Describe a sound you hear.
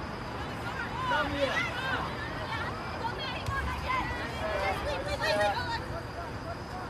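Young women shout and call out loudly outdoors.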